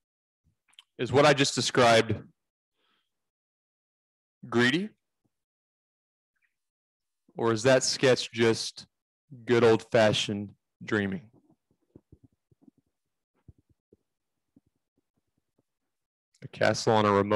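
A man speaks up close into a microphone with animation, in short bursts with pauses.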